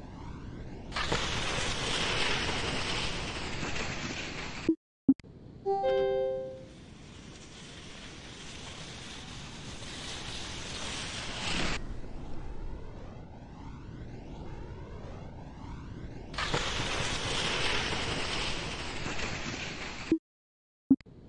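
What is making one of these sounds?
A crowd cheers loudly after a ski jumper lands.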